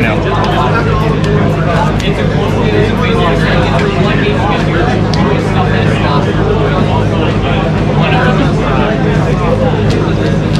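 Cards in plastic sleeves are shuffled with soft, rapid clicks.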